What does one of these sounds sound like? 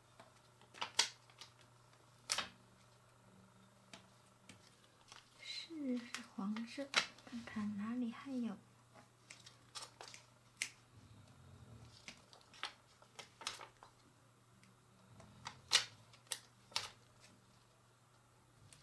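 Fingers tap and press small stickers onto a card with light clicks.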